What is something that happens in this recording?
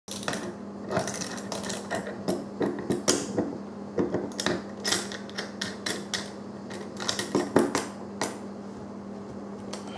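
Metal tools click and scrape against metal parts.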